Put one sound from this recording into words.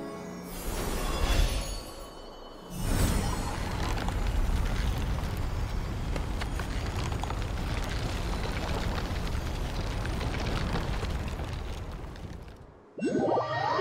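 A magical portal swirls open with a deep, rushing roar.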